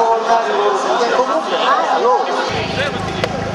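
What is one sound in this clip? A man speaks over a loudspeaker.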